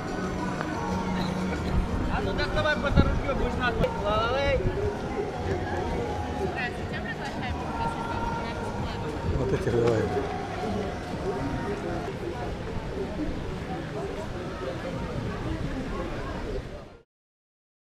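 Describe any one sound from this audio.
A crowd of adults chatters and calls out outdoors.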